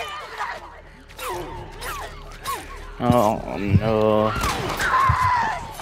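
A knife stabs into flesh with wet thuds.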